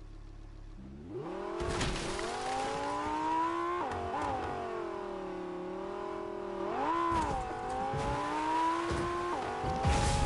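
A sports car engine revs and roars, rising and falling in pitch as it speeds over rough ground.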